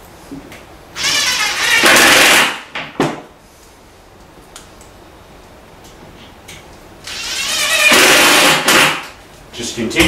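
A cordless drill whirs in short bursts, driving screws.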